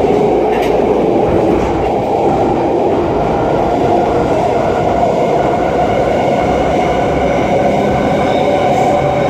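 A subway train rattles and roars loudly along the tracks.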